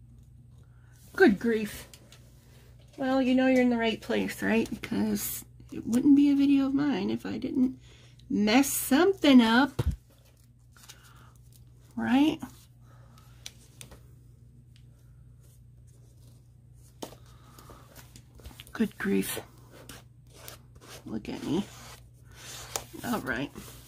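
Paper rustles softly as pages are pressed and smoothed.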